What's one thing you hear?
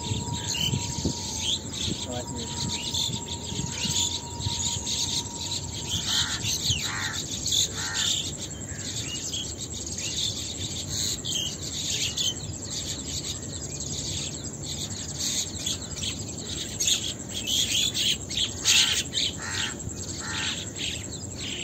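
Mongooses squeal with high, short chirps.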